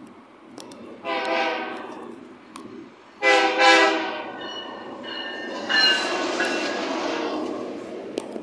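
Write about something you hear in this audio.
A train horn blares loudly in long blasts, several times.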